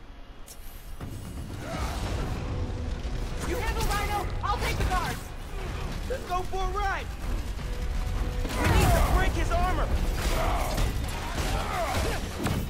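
Heavy blows thud and crash during a fight.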